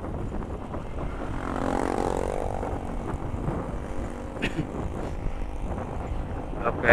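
Other motorbikes pass close by.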